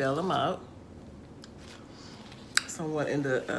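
A woman chews food with soft, crisp crunching sounds.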